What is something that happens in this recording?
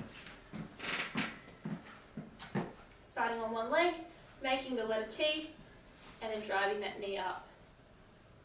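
A woman speaks calmly and clearly nearby.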